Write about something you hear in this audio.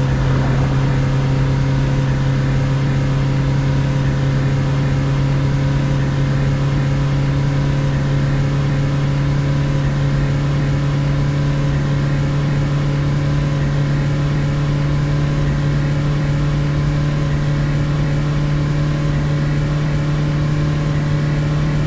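A van engine hums steadily at cruising speed.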